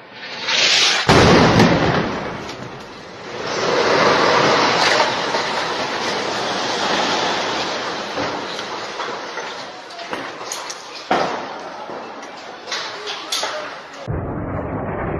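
A powerful explosion blasts close by and rumbles into a roar of debris.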